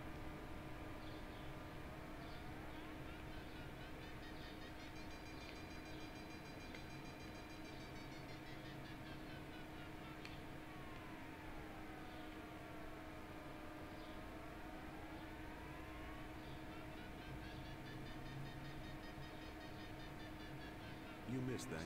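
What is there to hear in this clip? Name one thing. A glider's variometer beeps in a tone that slowly rises and falls in pitch.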